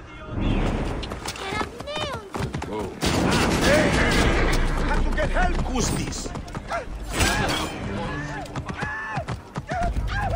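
Horse hooves clop on stone pavement.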